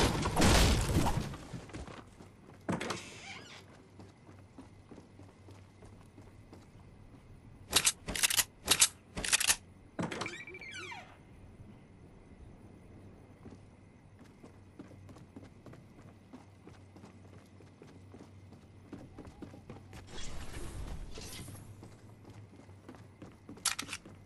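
Footsteps patter quickly across a wooden floor.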